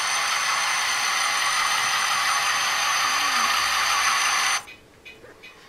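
Model train wheels click and rattle on the track.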